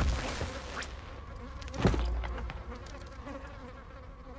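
A game menu clicks as an item is selected.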